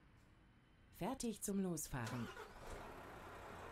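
A truck engine starts up.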